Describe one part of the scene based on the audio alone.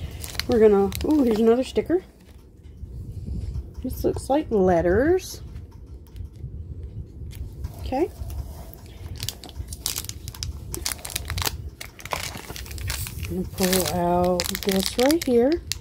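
Plastic packaging crinkles and rustles in someone's hands.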